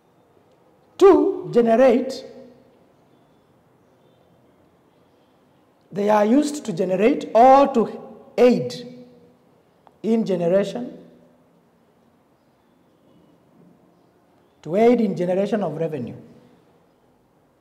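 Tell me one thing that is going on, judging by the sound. A man speaks calmly and clearly, close by, in short bursts with pauses.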